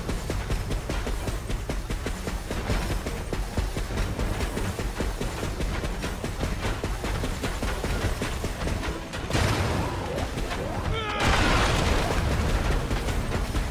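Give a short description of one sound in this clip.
A weapon swings and thuds into bodies.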